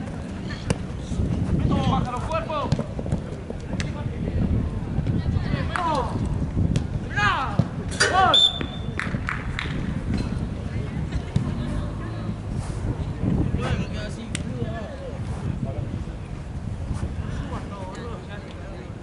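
Young men shout across an outdoor pitch.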